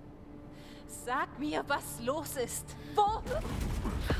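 A woman shouts in alarm.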